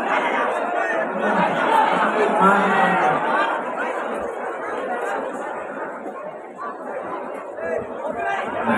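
A large crowd chatters and shouts loudly all around.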